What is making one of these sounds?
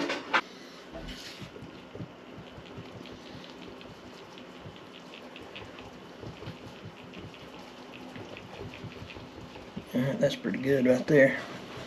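A spoon stirs batter, scraping against a bowl.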